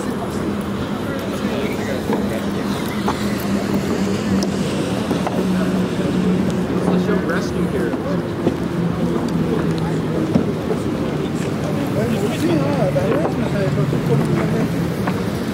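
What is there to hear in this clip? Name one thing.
A crowd of men and women murmurs nearby outdoors.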